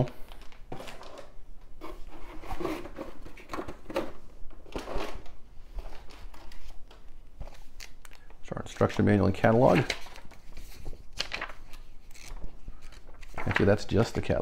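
Paper rustles and crinkles as pages are turned.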